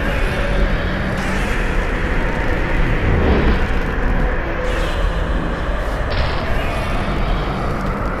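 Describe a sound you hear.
A huge monster roars loudly.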